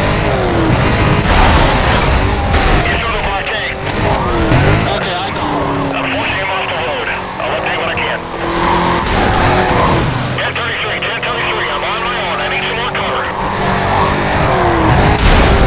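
Tyres screech as a car drifts around bends.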